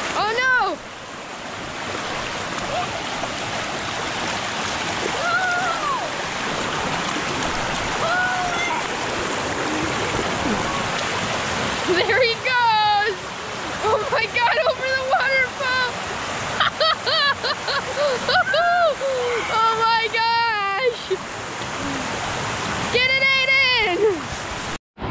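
Water rushes and splashes over rocks close by.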